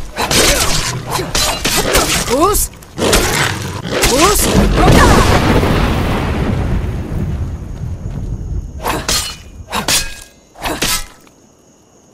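Heavy blows strike with loud thuds and clangs.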